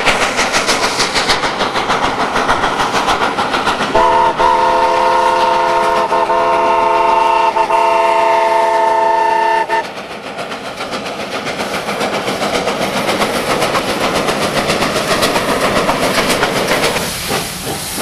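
A steam locomotive chuffs hard and rhythmically.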